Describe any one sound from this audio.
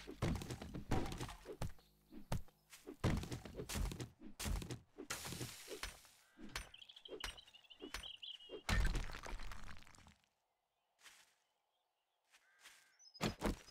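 Footsteps crunch on gravel and grass.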